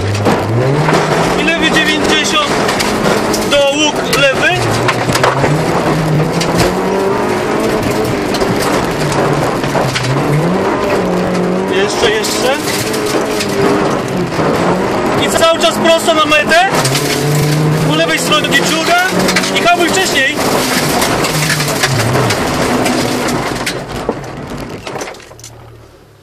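Tyres crunch over gravel and stones clatter against the car's underside.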